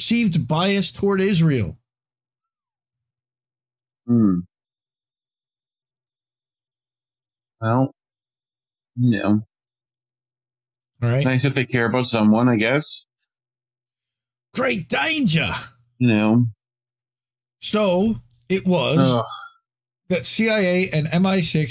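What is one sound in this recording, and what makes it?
A man speaks into a close microphone in bursts, with pauses between phrases.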